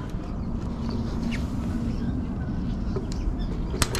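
A fish flaps and thumps on a wooden deck.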